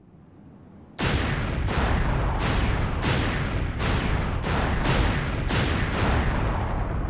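Loud explosions boom one after another in quick succession.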